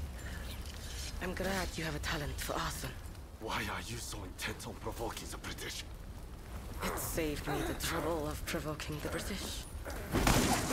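A second man speaks with a deep voice.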